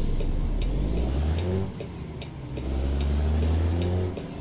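A truck engine revs up as it shifts gears.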